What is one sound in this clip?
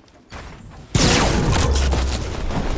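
A launch pad fires with a loud whoosh.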